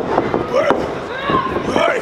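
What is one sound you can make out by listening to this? A young man yells loudly.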